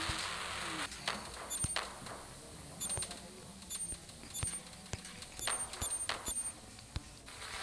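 Menu buttons click with short electronic beeps.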